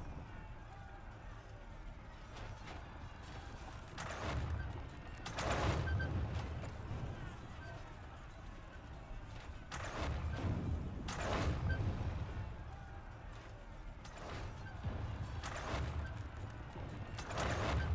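Distant battle noise rumbles and swells in waves.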